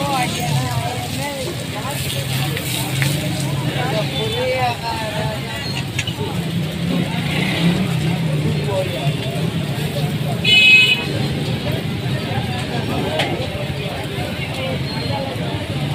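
A metal spatula scrapes and taps against a griddle.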